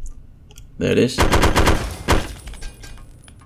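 Rapid gunfire rattles in a short burst.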